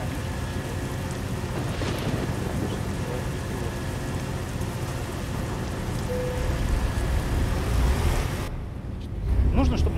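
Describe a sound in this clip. A truck engine idles with a deep, steady rumble.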